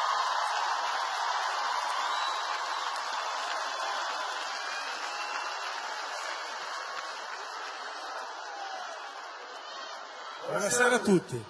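A large crowd cheers and applauds in a big arena.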